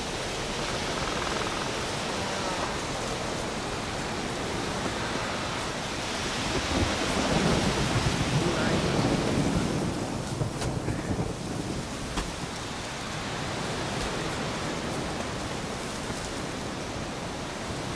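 Footsteps crunch over grass and undergrowth.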